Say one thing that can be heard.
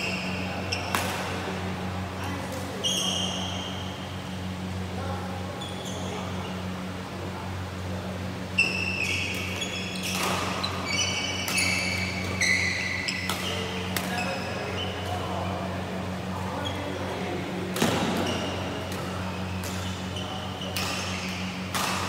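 Shuttlecocks are struck with sharp pops of rackets.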